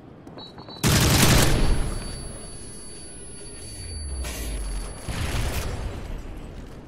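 A rifle fires a burst of loud gunshots.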